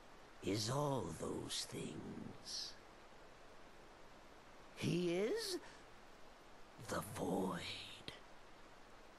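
A man speaks theatrically in a sly, playful voice.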